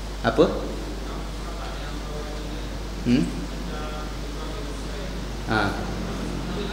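A man speaks calmly into a microphone in short bursts, with pauses between them.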